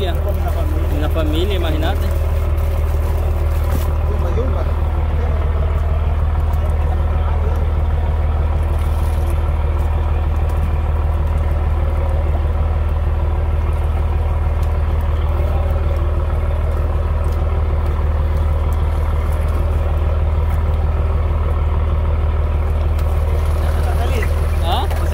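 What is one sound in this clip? A boat's outboard motor idles with a steady low rumble.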